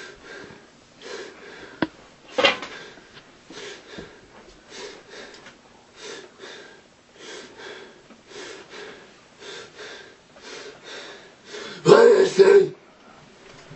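A young woman makes short rhythmic growling sounds close by.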